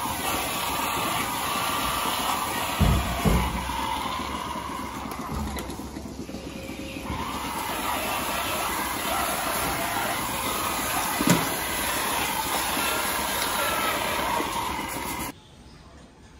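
A milking machine hums and hisses steadily.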